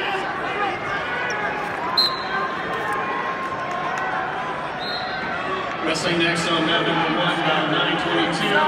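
A large crowd murmurs and chatters in a large echoing arena.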